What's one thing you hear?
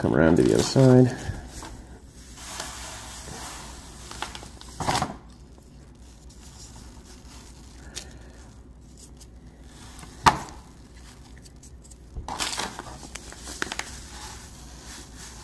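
Coarse grip tape rasps and rustles as hands press and rub it down.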